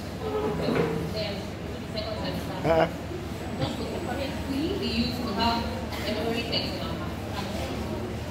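A young woman speaks into a microphone through loudspeakers in an echoing hall.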